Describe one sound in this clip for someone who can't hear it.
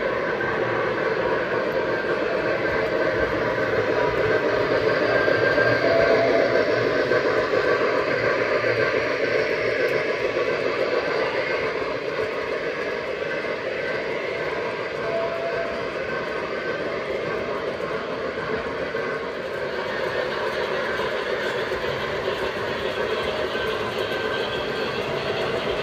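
A small train rumbles and clatters steadily along the tracks.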